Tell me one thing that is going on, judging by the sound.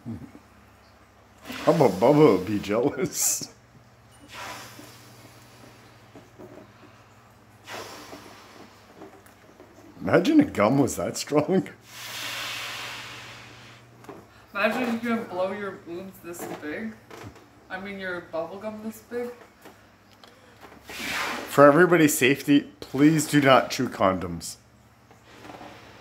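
A woman blows air into a balloon in long puffs.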